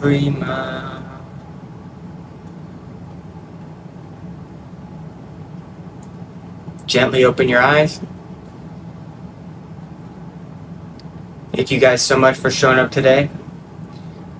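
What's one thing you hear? A young man speaks calmly and slowly, close by, with long pauses.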